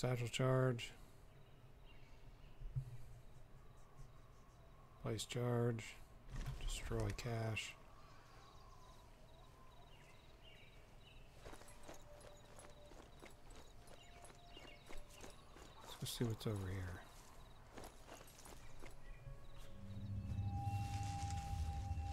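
Footsteps crunch over gravel and rustle through grass.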